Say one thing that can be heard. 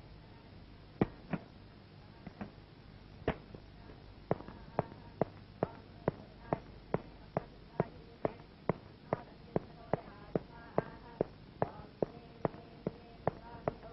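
Footsteps tap slowly and evenly on a hard floor.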